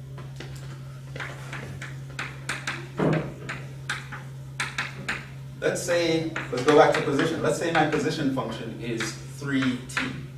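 Chalk taps and scratches on a blackboard.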